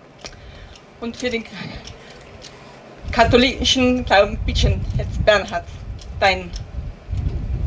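A middle-aged woman speaks into a microphone.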